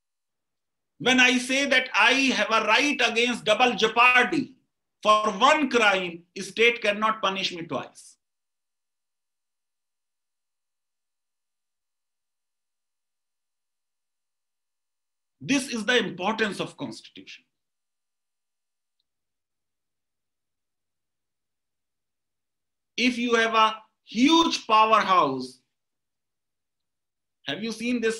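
A middle-aged man speaks with animation over an online call, in bursts with long pauses.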